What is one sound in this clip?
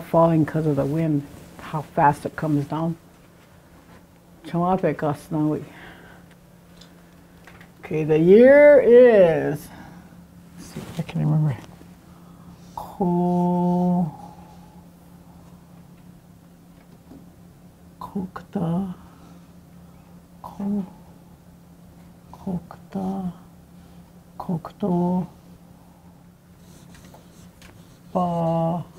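An elderly woman speaks slowly and clearly nearby, sounding out words.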